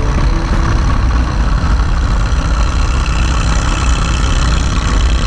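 A motorcycle engine rumbles steadily at speed.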